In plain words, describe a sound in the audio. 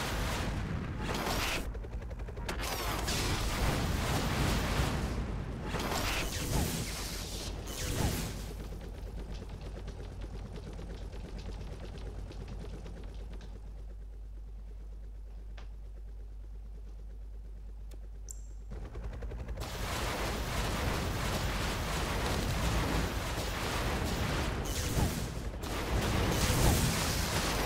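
Rapid gunfire and explosions crackle and boom.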